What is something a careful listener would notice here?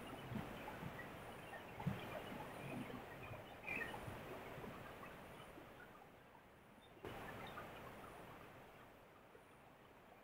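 A fast river rushes and churns nearby.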